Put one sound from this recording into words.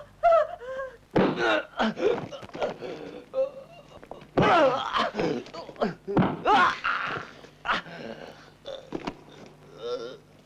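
A man groans and cries out in pain.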